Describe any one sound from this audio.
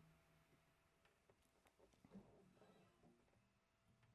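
An acoustic guitar is softly plucked.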